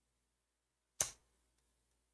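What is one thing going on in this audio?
A card taps down onto a soft surface.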